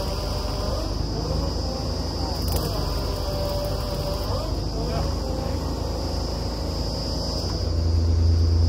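Men talk to each other outdoors.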